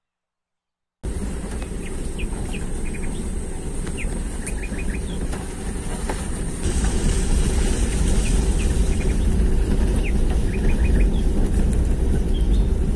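A car engine rumbles low while driving.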